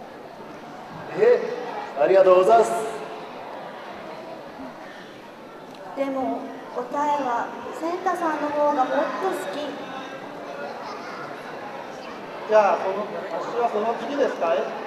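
Actors speak in stylized, drawn-out voices on a stage, heard from a distance in a hall.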